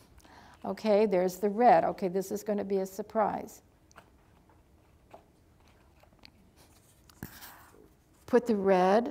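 An elderly woman speaks calmly and clearly into a nearby microphone, pausing between phrases.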